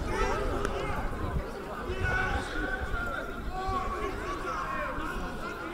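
Several young men argue and shout at each other outdoors.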